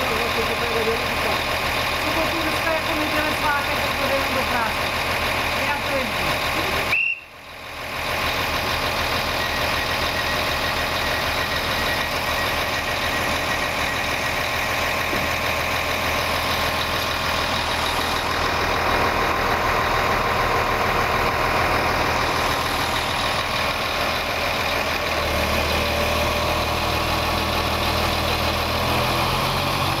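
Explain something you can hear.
A train idles with a steady low hum close by.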